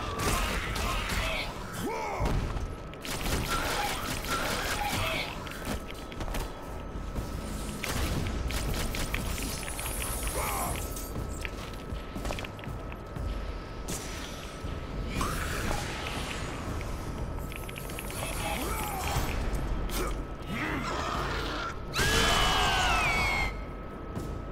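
Blades whoosh and strike with sharp, crackling hits.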